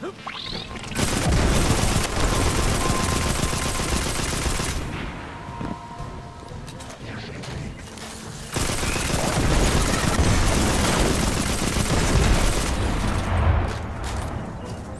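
Rapid gunfire blasts and crackles loudly.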